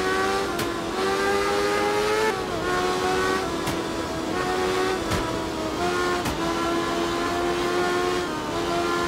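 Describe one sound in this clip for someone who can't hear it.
A car engine hums steadily, its pitch rising and dropping as gears shift.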